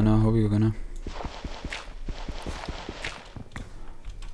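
A block is dug out with quick repeated scraping knocks.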